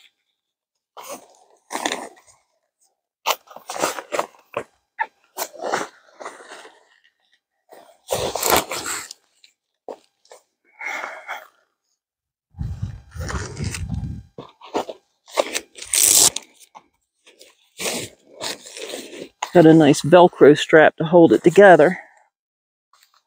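Nylon fabric rustles and crinkles as a tent is handled.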